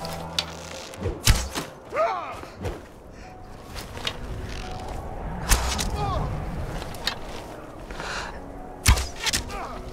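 A bowstring twangs sharply as arrows are loosed, several times.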